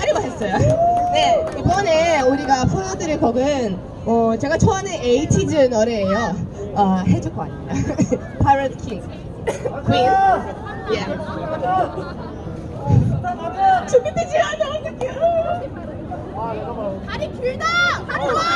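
A young woman talks with animation through a microphone and loudspeaker.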